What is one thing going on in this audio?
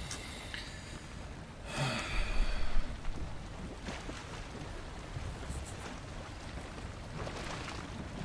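Water laps against a sailing boat's hull.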